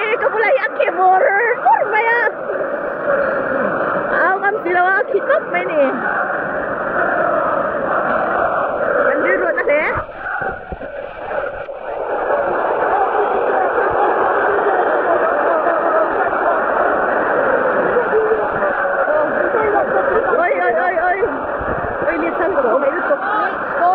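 A large stadium crowd roars and chants loudly outdoors.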